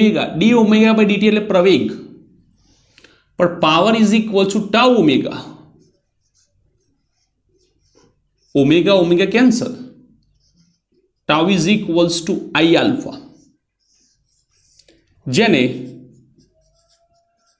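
A man explains calmly in short bursts, heard close by.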